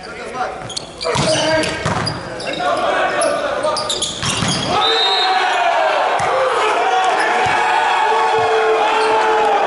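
Young men call out to each other during play.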